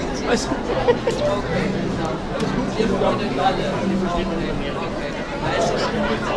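A man and a woman talk nearby.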